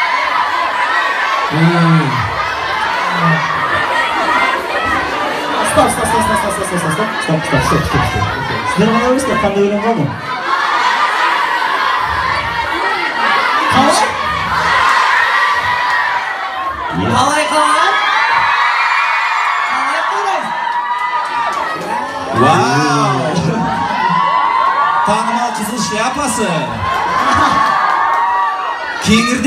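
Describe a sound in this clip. Young men speak with animation into microphones over loudspeakers.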